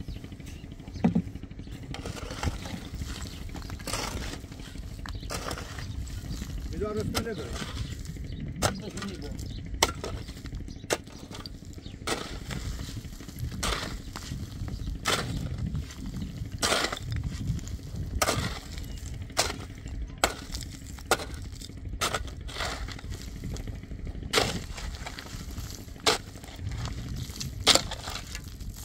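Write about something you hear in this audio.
A pickaxe strikes rocky ground again and again.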